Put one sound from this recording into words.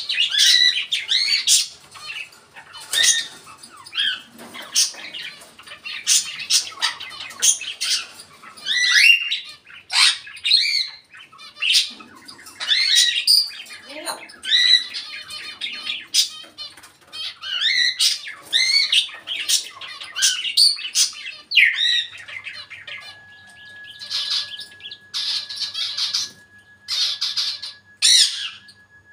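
A parrot whistles, squawks and chatters in short bursts close by.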